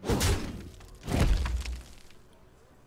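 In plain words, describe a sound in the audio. A bright magical burst sounds with a whoosh.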